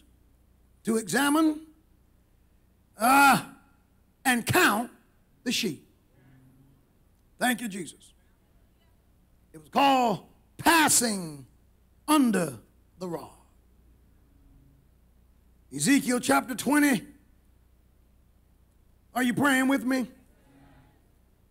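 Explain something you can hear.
A man preaches with animation into a microphone, in short bursts with pauses.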